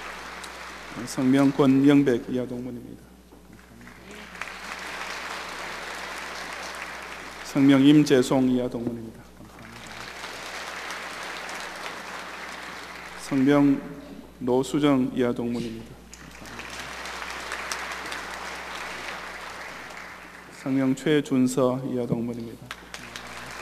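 A man reads out briefly through a microphone in an echoing hall.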